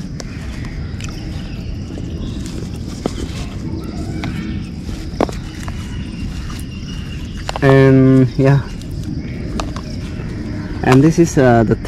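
Phones tap softly as they are laid down on grass.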